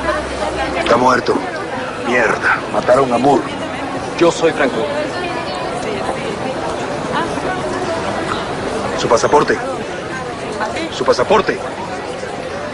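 A man speaks tensely nearby in short bursts.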